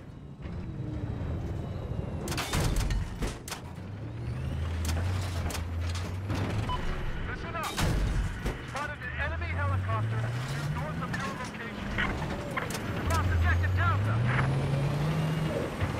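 A tank engine rumbles and revs up repeatedly.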